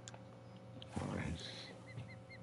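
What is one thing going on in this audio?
A fishing rod swishes through the air as it is cast.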